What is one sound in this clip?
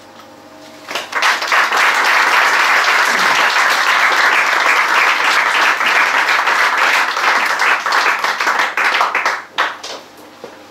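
An audience claps and applauds loudly, then the clapping dies away.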